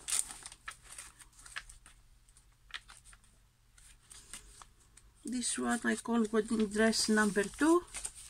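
Paper pages rustle as they are flipped.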